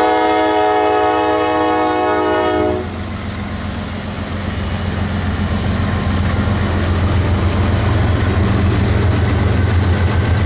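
Locomotive diesel engines rumble deeply as they pass close by.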